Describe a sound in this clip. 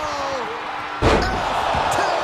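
A heavy body slams onto the mat with a thud.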